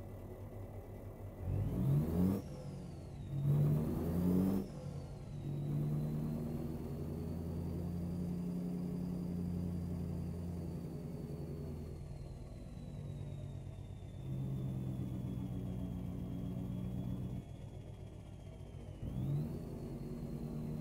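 A truck engine rumbles and revs as the truck manoeuvres slowly.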